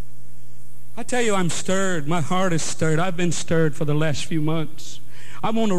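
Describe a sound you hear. A middle-aged man sings into a microphone.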